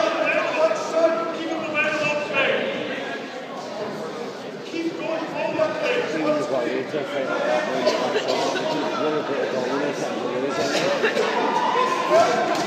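Gloved punches thud against a boxer's body.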